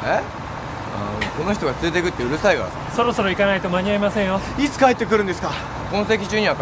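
A second young man answers calmly.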